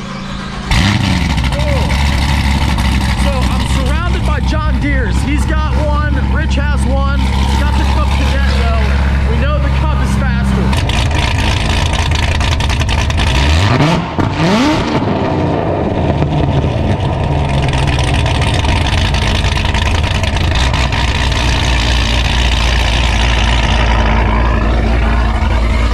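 A sports car engine rumbles loudly at idle through its exhaust.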